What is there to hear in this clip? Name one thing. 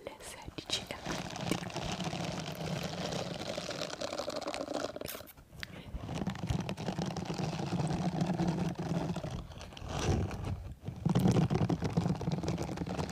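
A rubber glove rubs and scratches against a microphone close up.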